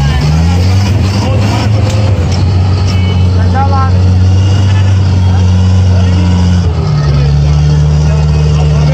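Men call out to each other nearby.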